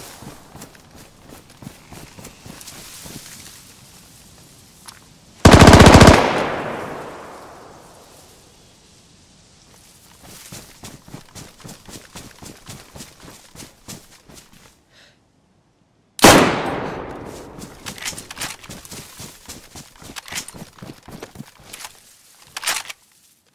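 Footsteps rustle through grass and dry leaves.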